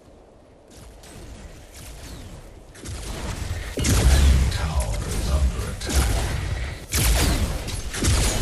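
Fiery magic blasts explode in a video game battle.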